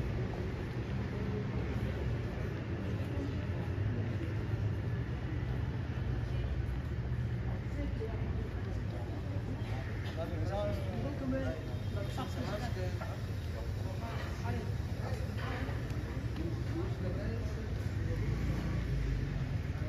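Men and women chat and murmur nearby outdoors.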